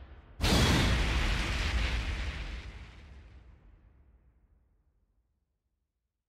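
A fiery blast booms suddenly and slowly fades away.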